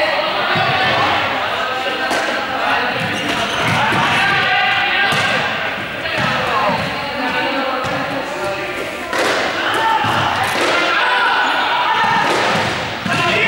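A group of young people shout and call out to one another in a large echoing sports hall.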